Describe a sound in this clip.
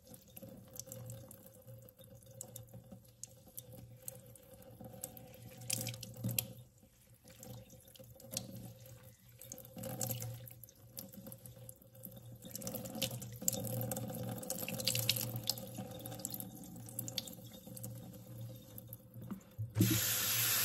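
Fingers rub and squelch through wet hair.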